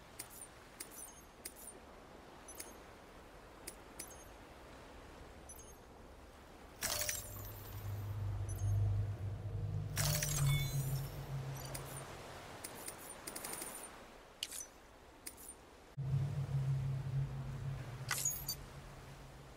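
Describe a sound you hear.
Soft electronic menu clicks tick now and then.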